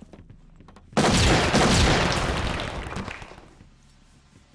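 A loud blast roars and slowly dies away.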